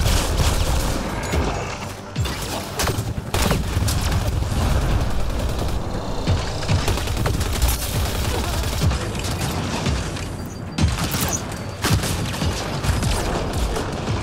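Explosions thump loudly in a video game.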